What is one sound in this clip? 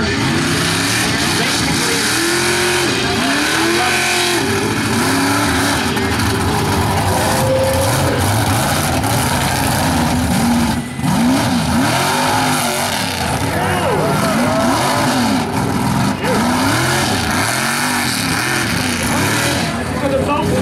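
A big truck engine roars and revs hard, rising and falling.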